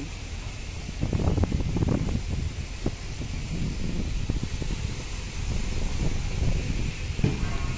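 A crane's engine rumbles nearby.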